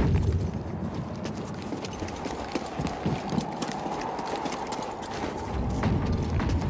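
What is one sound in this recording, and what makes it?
Footsteps patter quickly over stone.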